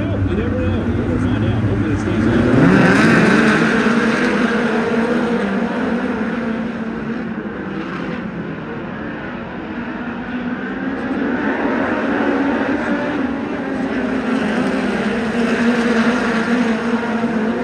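Racing engines roar loudly as a pack of small race cars speeds around a dirt track.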